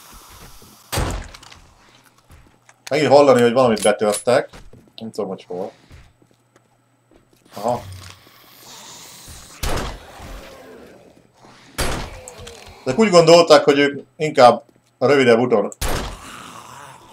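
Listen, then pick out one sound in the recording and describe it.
Rifle shots ring out sharply.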